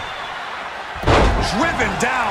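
A wrestler slams heavily onto the ring mat with a loud thud.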